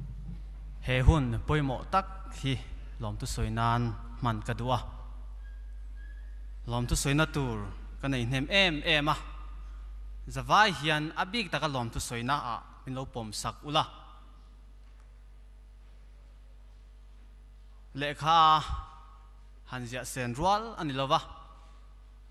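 A man speaks slowly through loudspeakers in a large echoing hall.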